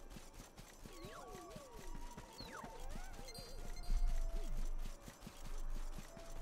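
Footsteps run quickly over grass and a path.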